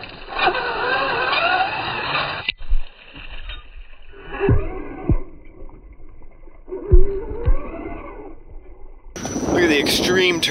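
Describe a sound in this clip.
A small electric motor whines, rising and falling as it revs.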